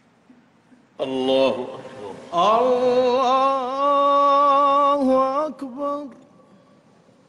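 A man chants in a long, drawn-out voice through loudspeakers in a large echoing hall.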